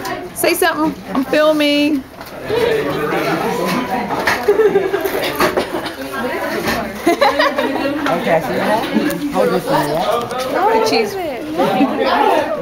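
Children talk and shout excitedly close by.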